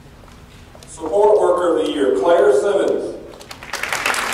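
A man speaks through a loudspeaker.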